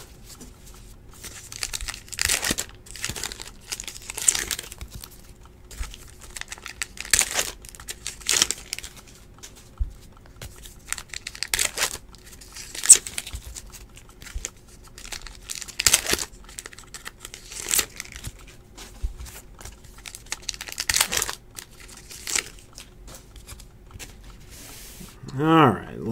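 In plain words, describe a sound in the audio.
Cards slide and slap softly as a hand sorts them into stacks.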